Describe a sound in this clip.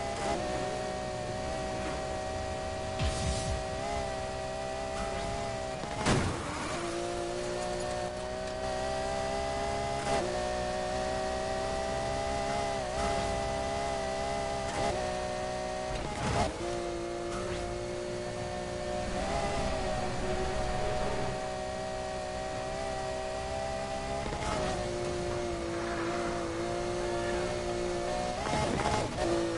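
A sports car engine roars at high speed and shifts gears.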